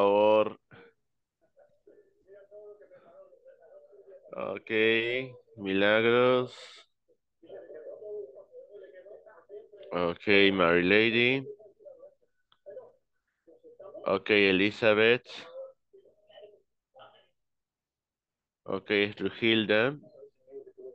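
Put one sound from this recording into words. A man speaks with animation through an online call, in short loud bursts.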